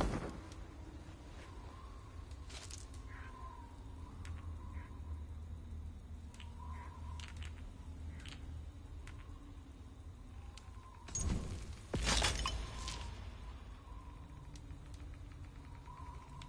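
Soft interface clicks and blips sound as menu options are selected.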